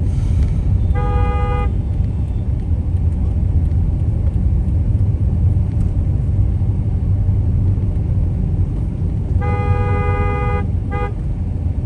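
Vehicle horns honk in traffic nearby.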